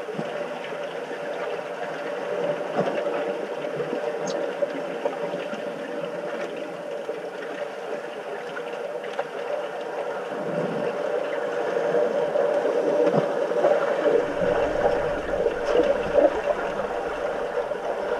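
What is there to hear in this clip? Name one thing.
Air bubbles gurgle and rush underwater, heard muffled through the water.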